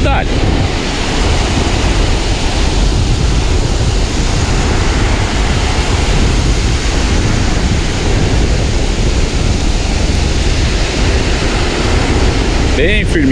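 Waves wash onto a beach, heard outdoors in wind.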